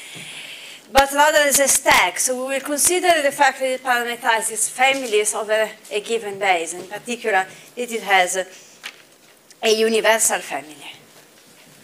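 A young woman speaks calmly and clearly to an audience.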